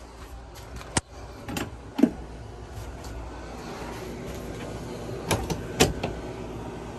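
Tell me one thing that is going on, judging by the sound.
A hinged table leaf swings and clunks into place.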